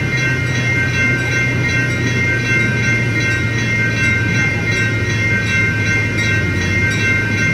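Train wheels clack on the rails.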